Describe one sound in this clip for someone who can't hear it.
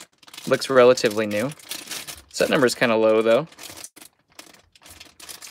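A plastic bag crinkles as hands handle it.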